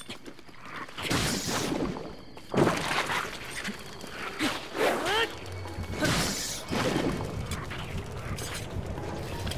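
Fire crackles and whooshes as flames burst.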